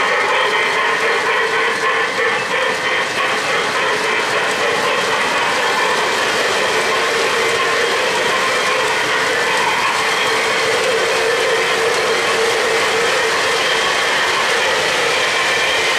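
A model train rumbles and clatters steadily along its tracks.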